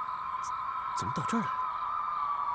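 A man speaks briefly in a low voice, close by.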